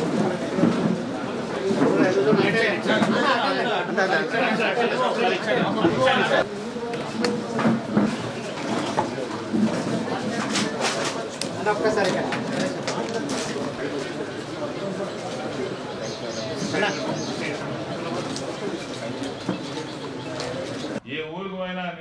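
A crowd of people chatter and talk over one another nearby.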